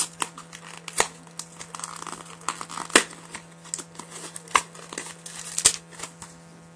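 Small objects tap on a wooden table.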